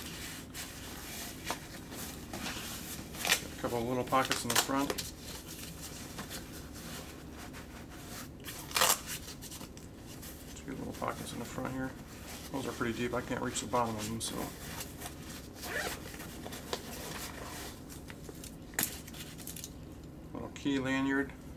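Hands rustle and shift a fabric bag.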